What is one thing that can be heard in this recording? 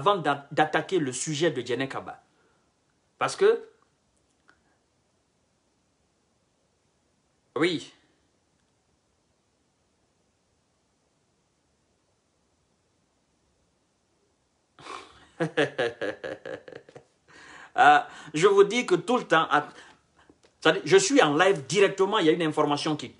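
A man speaks close by in short bursts with long pauses, then talks with animation.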